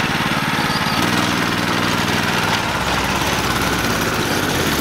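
A kart engine revs up as the kart pulls away.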